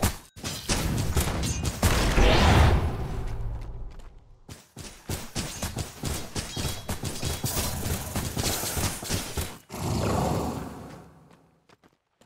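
Video game combat sounds clash, crackle and boom in quick bursts.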